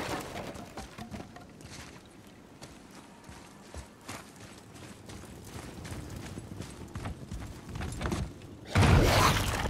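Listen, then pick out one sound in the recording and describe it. Footsteps thud on stone and wooden floors.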